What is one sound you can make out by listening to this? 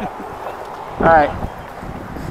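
A man calls out a short greeting nearby.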